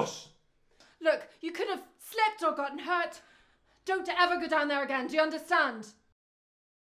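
A woman speaks urgently nearby.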